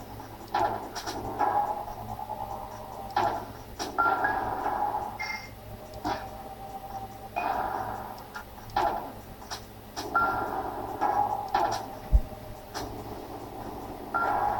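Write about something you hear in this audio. Electronic game sound effects chirp and blip in quick bursts.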